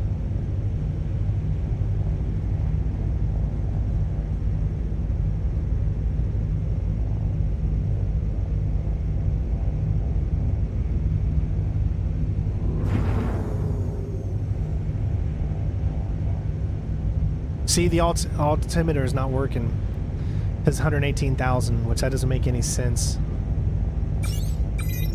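A spacecraft engine hums with a low, steady rumble.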